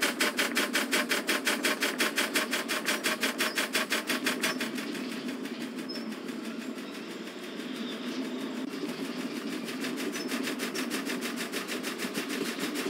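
A freight train rumbles and rattles along the rails.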